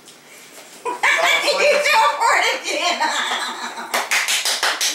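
A young woman shrieks with laughter.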